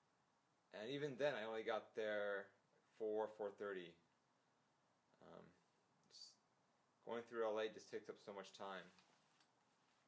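A young man speaks calmly close by, in short bursts with pauses.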